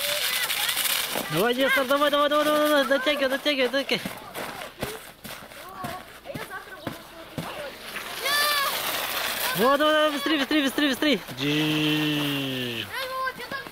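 A sled slides and scrapes down packed snow.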